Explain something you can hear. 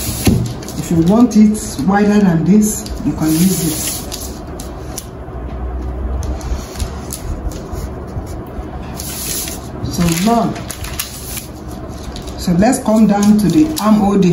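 A felt marker squeaks and scratches across paper.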